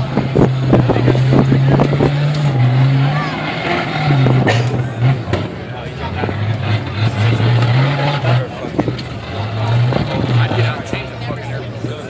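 An off-road vehicle's engine revs hard as it climbs over rocks.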